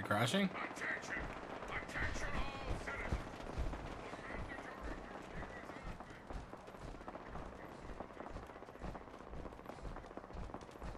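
Heavy metal footsteps thud steadily on a hard road.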